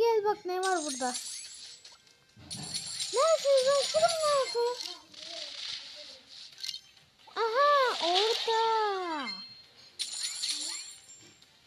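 Cartoonish game sound effects play in short bursts.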